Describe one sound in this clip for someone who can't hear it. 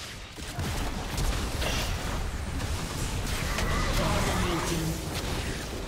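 Game spells whoosh and crackle during a fast battle.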